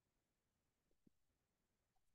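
A laptop lid taps lightly against a lectern.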